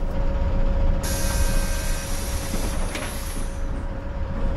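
Bus doors open with a loud hiss of air.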